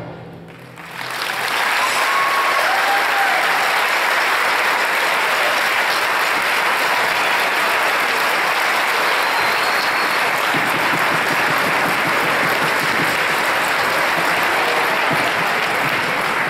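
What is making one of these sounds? A large crowd applauds in a large echoing hall.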